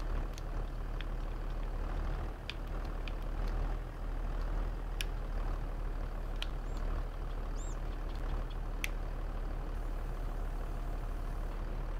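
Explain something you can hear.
A hydraulic loader arm whines as it lowers a bale.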